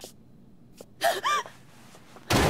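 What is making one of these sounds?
A young woman speaks briefly and tensely, close by.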